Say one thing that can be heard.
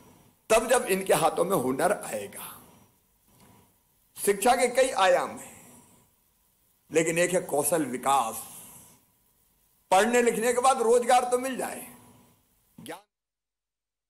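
A middle-aged man speaks forcefully through a microphone in bursts, with pauses between.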